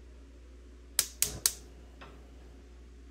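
A frying pan clanks on a stove grate.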